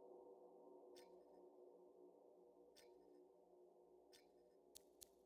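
A soft electronic blip sounds each time a menu option is selected.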